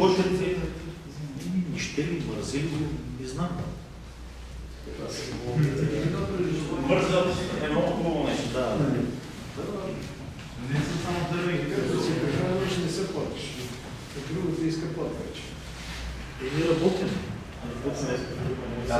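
An older man speaks calmly.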